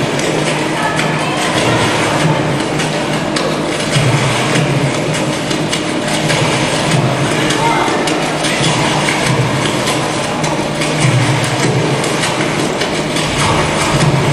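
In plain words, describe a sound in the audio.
Music with a pulsing low beat plays loudly through loudspeakers in a large hall.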